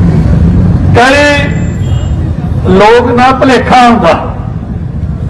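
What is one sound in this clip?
A man speaks loudly into a microphone over a loudspeaker, outdoors.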